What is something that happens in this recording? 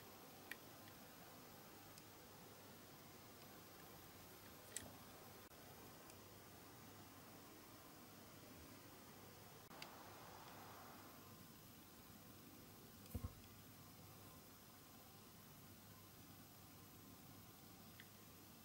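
Small metal tools click and tap against a toy car.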